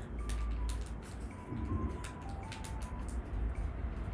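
Small tablets rattle in a man's hands.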